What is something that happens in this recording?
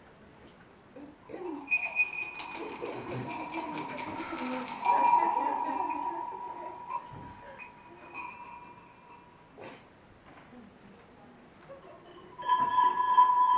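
Music plays through a loudspeaker.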